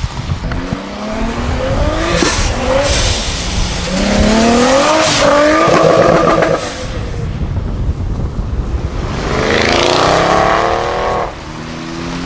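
A sports car engine revs loudly and accelerates away.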